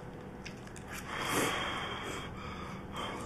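An older man slurps noodles loudly.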